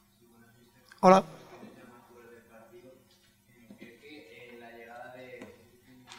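A man speaks calmly into a microphone at close range.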